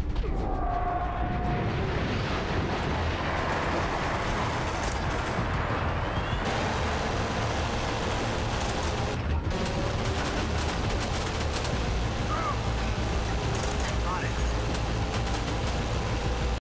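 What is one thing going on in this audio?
Explosions boom and rumble all around.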